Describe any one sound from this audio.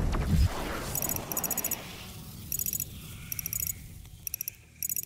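Short electronic menu beeps sound in quick bursts.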